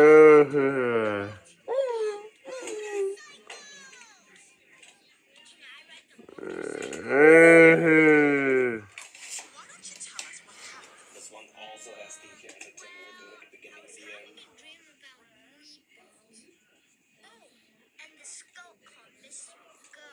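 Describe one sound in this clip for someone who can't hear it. Cartoon voices and music play faintly through a small tablet speaker.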